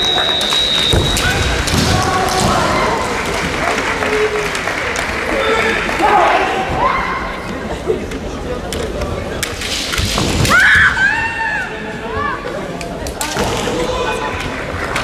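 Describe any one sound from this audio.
Young women shout sharp, drawn-out kiai in a large echoing hall.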